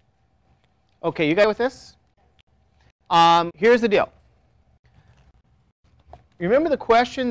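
An adult man lectures in a calm voice, close by.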